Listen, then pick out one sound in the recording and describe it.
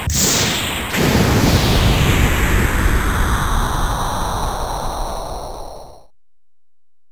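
A huge explosion roars and slowly fades.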